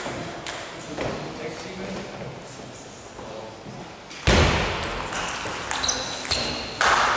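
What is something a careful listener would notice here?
A table tennis ball clicks back and forth off paddles and the table in an echoing hall.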